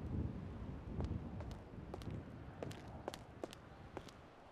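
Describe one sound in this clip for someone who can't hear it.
Footsteps click on a hard floor.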